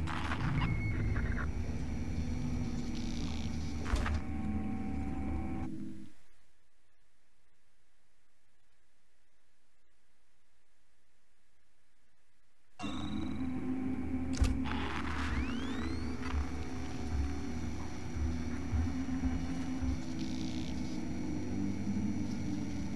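An electronic tracker beeps and pings.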